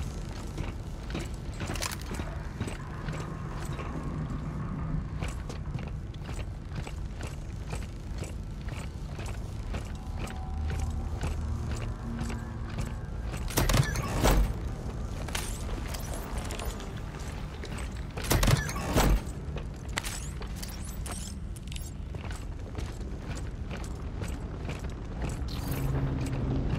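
Heavy boots clank on metal flooring.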